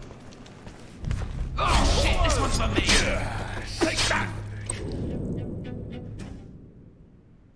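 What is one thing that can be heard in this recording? A heavy weapon swings with a loud whoosh and crash.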